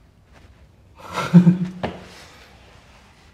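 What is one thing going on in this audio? Two young men laugh close by.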